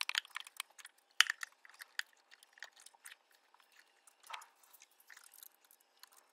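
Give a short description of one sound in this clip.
Plastic parts click and rattle close by.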